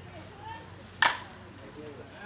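A softball bat cracks sharply against a ball.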